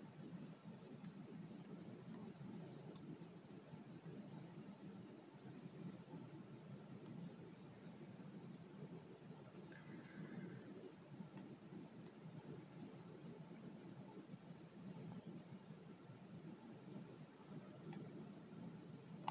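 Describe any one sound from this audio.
A plastic dial scrapes softly against paper as hands turn it.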